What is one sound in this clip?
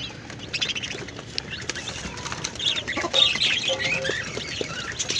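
Many young chicks peep shrilly and constantly.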